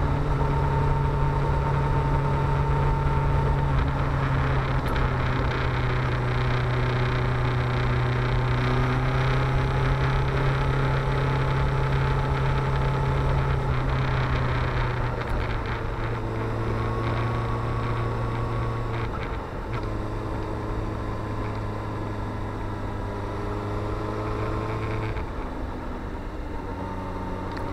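An inline-four sport bike engine hums while cruising, with the pitch dropping as it changes gear.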